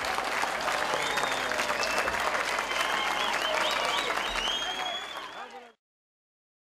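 A band plays loud live music.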